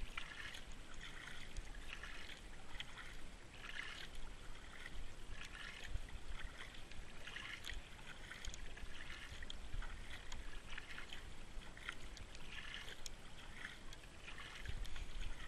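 A kayak paddle dips and splashes in calm water in a steady rhythm.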